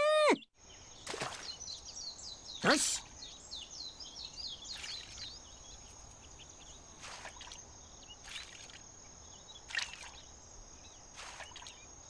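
Water splashes lightly, again and again.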